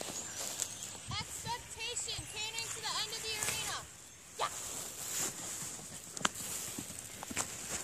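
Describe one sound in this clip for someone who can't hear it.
A horse's hooves thud on soft dirt.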